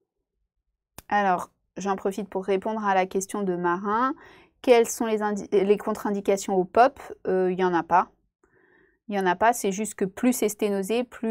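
A young woman speaks calmly and clearly into a close microphone, as if on an online call.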